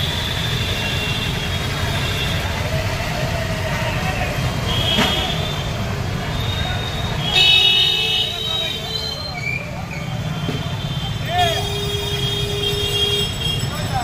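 Traffic rumbles steadily along a busy street.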